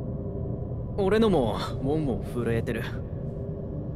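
A man speaks firmly and briefly.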